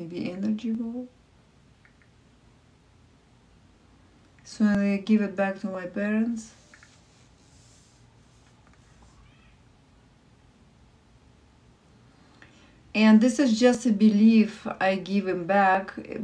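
A woman sings softly and slowly close to a microphone, with pauses between phrases.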